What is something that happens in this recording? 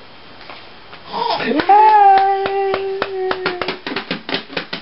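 A baby squeals and babbles loudly.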